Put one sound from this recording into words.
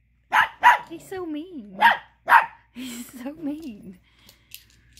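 A dog whines and grumbles in a rising and falling voice.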